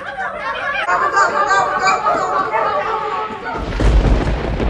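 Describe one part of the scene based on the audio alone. A group of young girls sings and chants together nearby.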